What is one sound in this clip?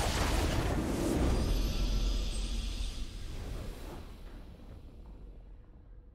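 A triumphant game fanfare plays and fades out.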